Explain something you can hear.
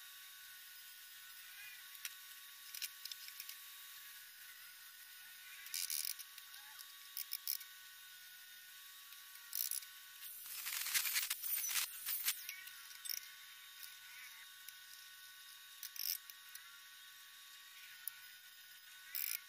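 An electric welder crackles and sizzles in short bursts.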